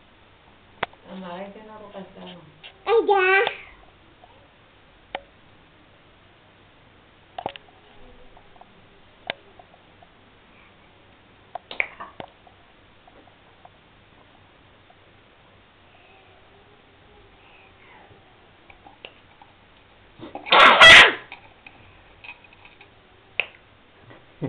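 A small child babbles and sings softly nearby.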